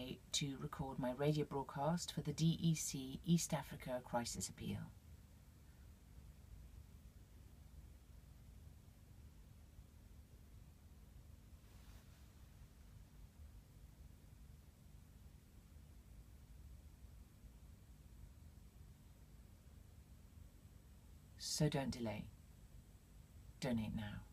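A woman speaks calmly and close to the microphone.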